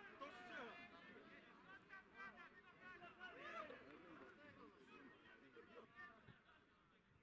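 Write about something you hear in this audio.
Men talk with each other close by outdoors.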